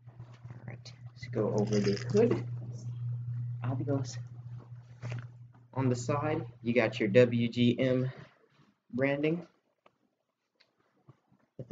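Fabric rustles as a hoodie is handled.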